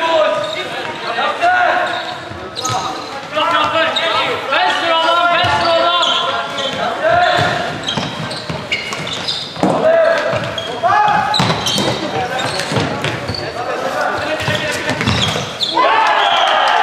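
Players shout to each other across an echoing hall.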